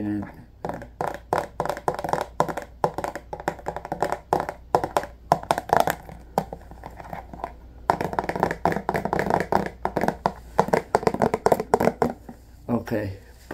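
A plastic package crinkles and crackles in hands.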